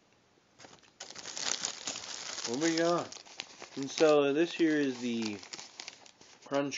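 A plastic bag crinkles loudly close by.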